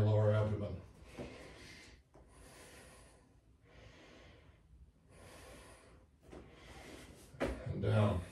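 A man breathes deeply in and out.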